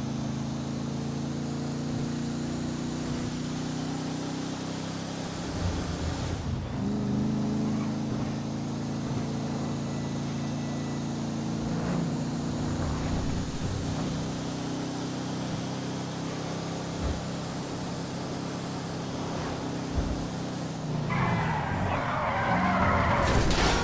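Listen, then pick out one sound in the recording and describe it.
A car engine hums steadily as a car drives along a road.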